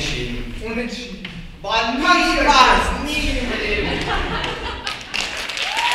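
Two boys speak loudly and with animation on a stage.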